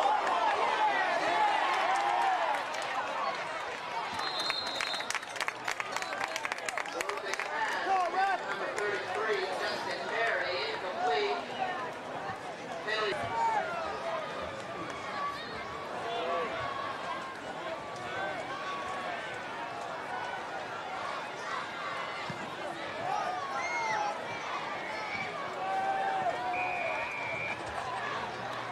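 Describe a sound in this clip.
A large crowd of spectators chatters and cheers outdoors.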